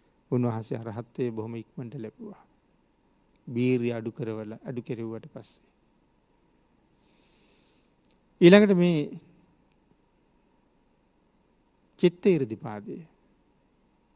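A man speaks calmly and slowly through a microphone, in short phrases with pauses.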